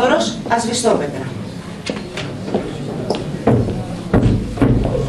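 A woman speaks through a microphone in an echoing hall.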